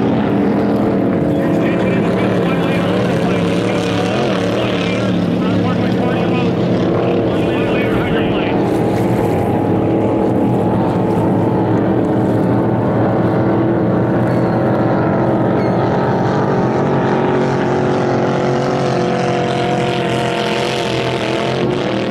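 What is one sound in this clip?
A racing powerboat engine roars loudly and steadily across the water.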